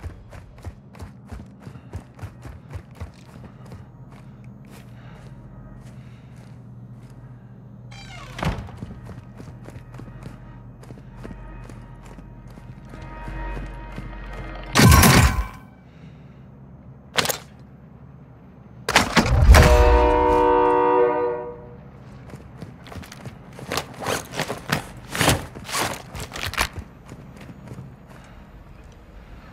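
Footsteps tap quickly across a hard floor.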